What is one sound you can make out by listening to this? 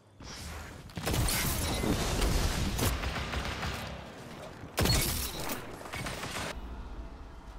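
A shotgun fires in a video game.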